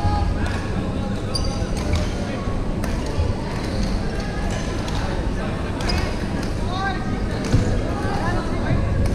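Shuttlecocks pop off badminton rackets in a large echoing hall.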